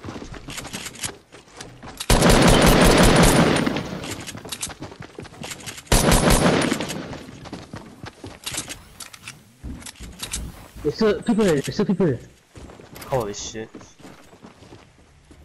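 Wooden walls clatter as they are built.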